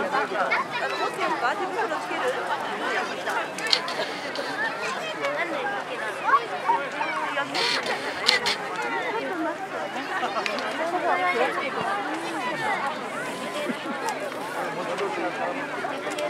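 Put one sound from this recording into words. A bonfire crackles and pops.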